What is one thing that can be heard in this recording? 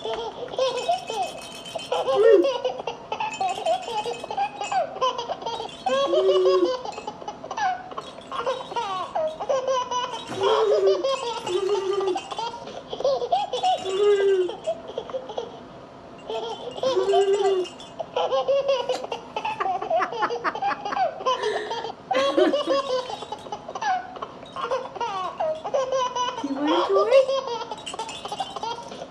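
A rattle toy shakes and rattles.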